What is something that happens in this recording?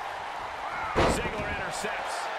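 A wrestler thuds down hard on a ring mat.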